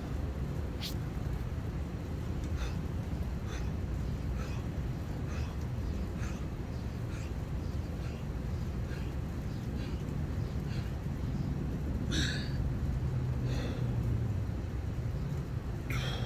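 A man breathes hard while doing push-ups.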